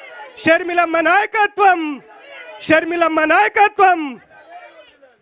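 A middle-aged man shouts forcefully through a loudspeaker.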